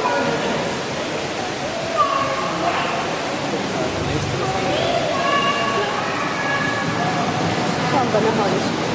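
Water laps gently.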